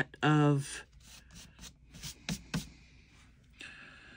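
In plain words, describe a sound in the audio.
Paper rustles and slides softly across fabric.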